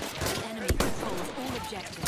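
A gun reloads with metallic clicks.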